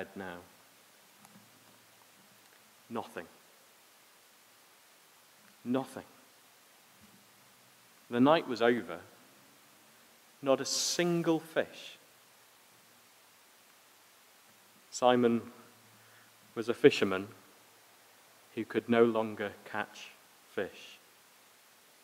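A man speaks calmly into a microphone with long pauses.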